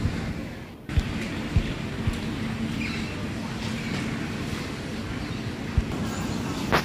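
Conveyor slats knock now and then as a baggage carousel turns.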